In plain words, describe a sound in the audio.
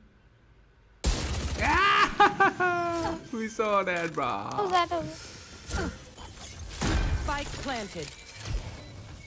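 A young man speaks excitedly into a close microphone.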